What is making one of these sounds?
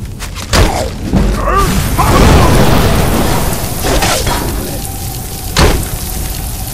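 Metal weapons clash and strike against a shield.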